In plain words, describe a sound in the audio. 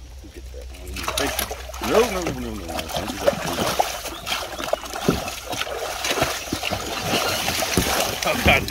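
A fish thrashes and splashes loudly in shallow water.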